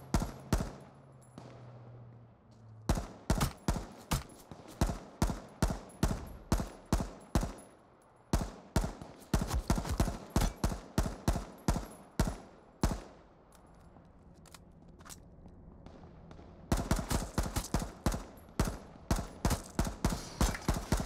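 A rifle fires repeated sharp shots in quick bursts.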